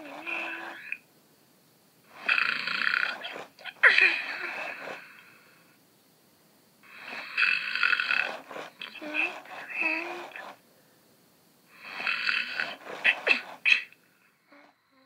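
A toy's high, squeaky voice giggles and chatters in short bursts.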